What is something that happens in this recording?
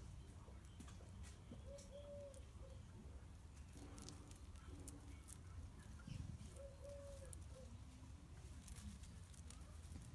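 Dogs' paws crunch and rustle on dry leaves and gravel.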